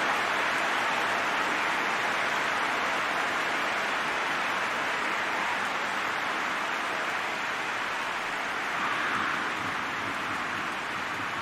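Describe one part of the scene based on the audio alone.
A large stadium crowd roars steadily throughout.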